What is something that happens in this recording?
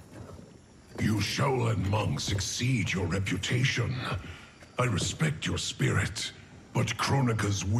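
A man speaks in a deep, calm, commanding voice.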